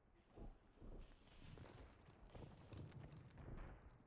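Footsteps thud quickly over hard ground.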